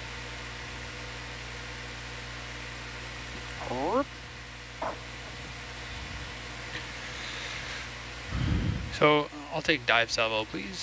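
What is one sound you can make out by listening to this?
An underwater vehicle's motors hum steadily.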